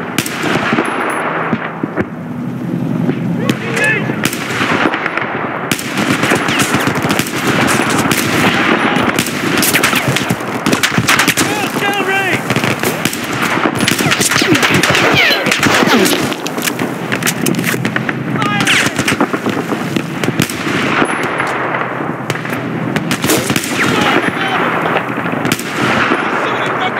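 Rifle shots fire one after another, loud and sharp.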